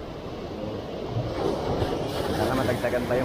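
A wave crashes loudly onto rocks and splashes.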